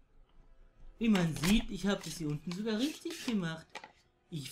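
A young man talks nearby with animation.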